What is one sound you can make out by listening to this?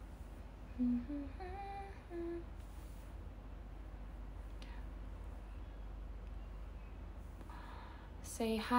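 A young woman speaks close to a microphone in short, casual bursts.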